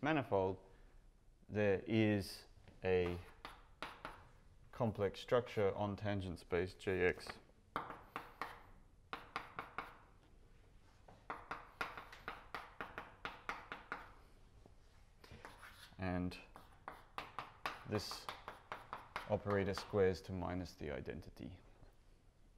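A man speaks calmly, lecturing in a room with some echo.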